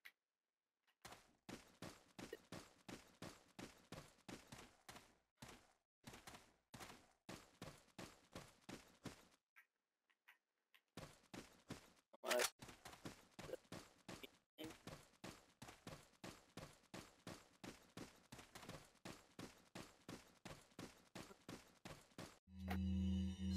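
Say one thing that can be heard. Footsteps tap steadily on a gritty stone floor.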